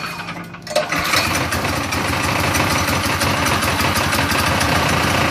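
A small engine roars loudly up close.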